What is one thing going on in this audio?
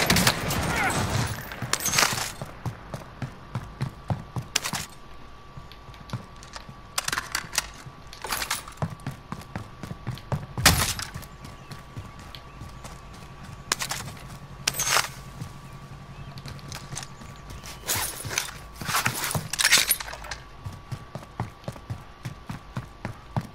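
Footsteps run quickly over hard floors and pavement.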